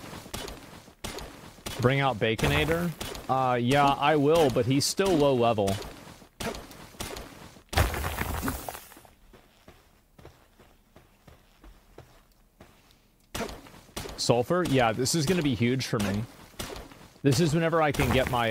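A pickaxe strikes rock with sharp clinks.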